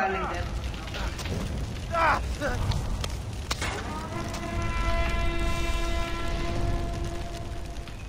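Flames crackle and roar nearby.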